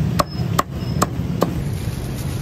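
A cleaver chops through roast goose on a wooden chopping block.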